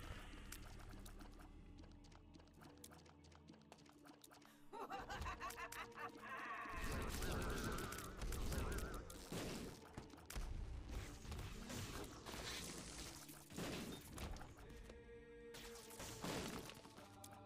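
Game sound effects pop and blast rapidly.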